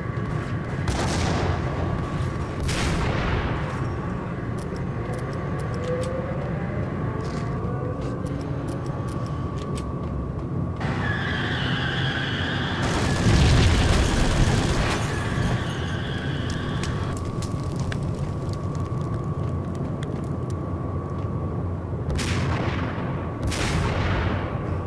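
A rifle fires loud sharp shots that echo.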